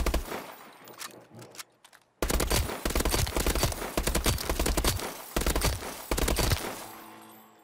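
Rapid gunfire bursts from an automatic rifle, echoing.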